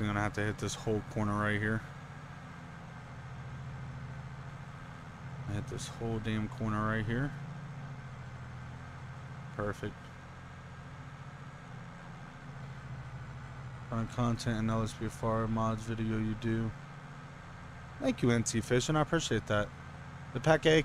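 A tractor engine hums steadily at low pitch.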